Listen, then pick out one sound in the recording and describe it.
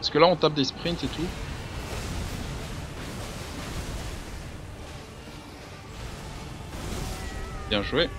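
Magic blasts roar and crackle.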